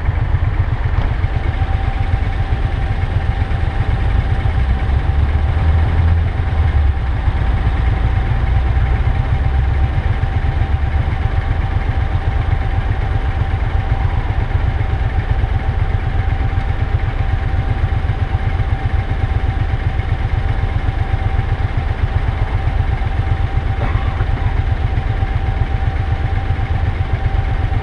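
A motorcycle engine idles close by with a low, steady rumble.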